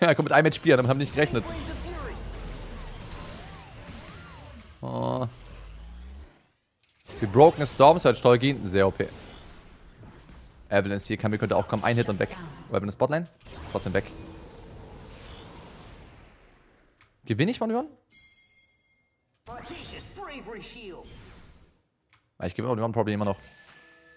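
A young man talks with animation into a close microphone, in bursts.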